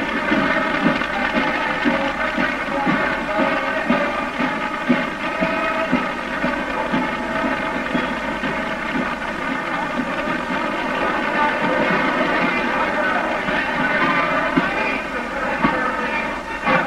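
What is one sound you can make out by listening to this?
Drums beat a steady marching rhythm.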